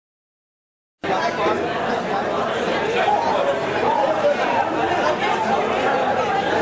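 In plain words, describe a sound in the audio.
A crowd of young people chatters and talks loudly.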